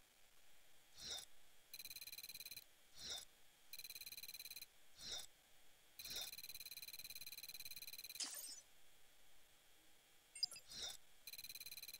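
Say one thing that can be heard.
Soft electronic whooshes sweep past between the bursts.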